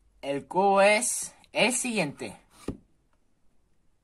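Cardboard rubs and scrapes as a cube slides out of its box.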